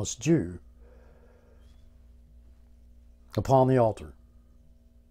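An elderly man speaks in short bursts, close by.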